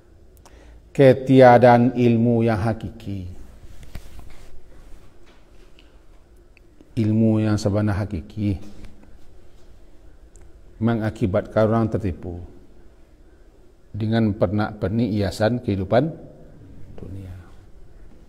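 A middle-aged man speaks calmly and slowly into a microphone, in short phrases with pauses.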